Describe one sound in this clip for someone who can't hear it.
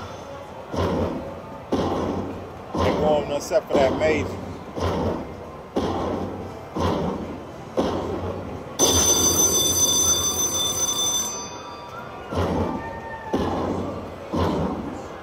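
A slot machine plays short bursts of bright music in a steady beat as a win counts up.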